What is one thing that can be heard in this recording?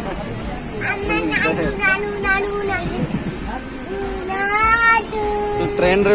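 A young boy laughs and talks excitedly close by.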